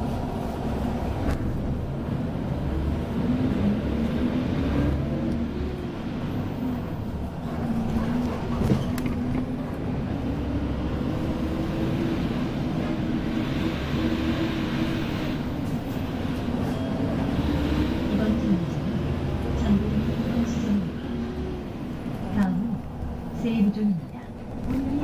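A vehicle engine hums and rises and falls in pitch while driving.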